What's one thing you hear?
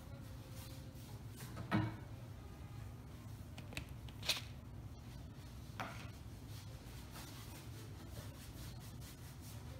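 A paintbrush swishes softly across a canvas.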